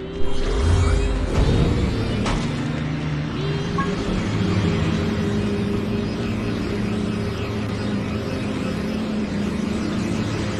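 A hovering vehicle's engine hums steadily.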